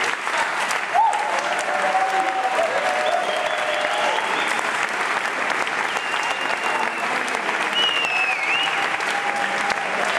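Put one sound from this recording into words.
People in the audience cheer and whoop.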